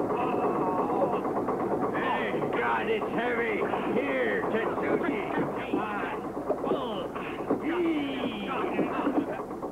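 Water splashes loudly against the side of a boat.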